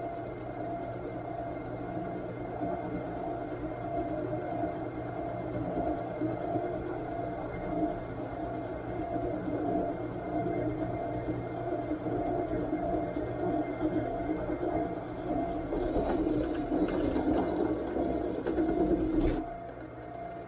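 A milling cutter grinds through metal.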